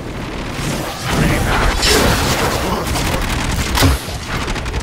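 A crackling electric blast roars loudly.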